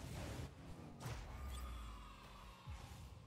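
A goal explosion booms.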